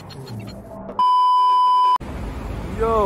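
A steady test tone beeps.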